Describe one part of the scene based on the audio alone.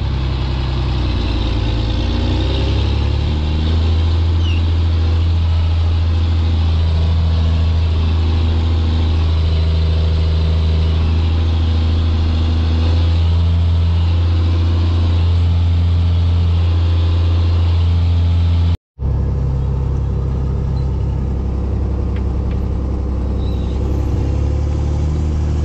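A tractor engine drones loudly and steadily from inside the cab.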